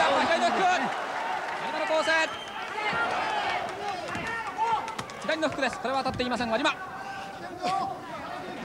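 A large crowd murmurs and cheers in a big hall.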